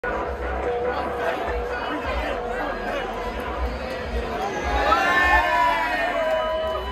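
A crowd chatters and cheers in a loud room.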